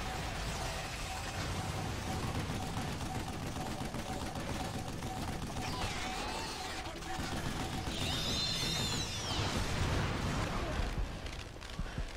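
Heavy machine guns fire in rapid bursts.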